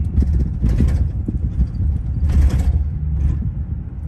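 A city bus idles and rumbles close alongside.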